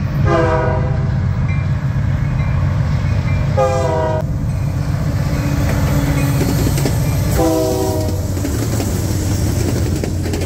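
A diesel locomotive engine rumbles loudly as it passes close by.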